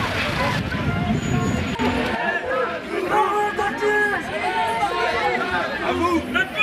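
A crowd of men and women talk and call out nearby, outdoors.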